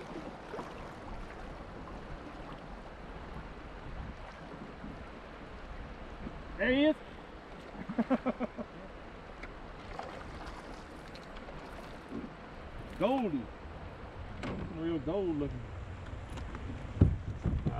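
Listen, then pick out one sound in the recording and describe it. River water laps and flows steadily around a kayak.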